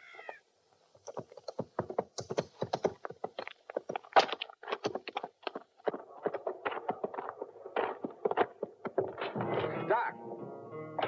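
Horse hooves clop on dirt.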